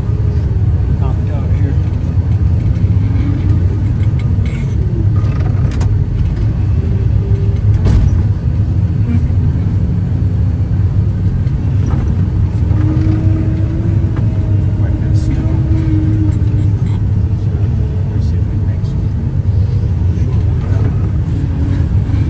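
Small pieces of ice tick against a windshield now and then.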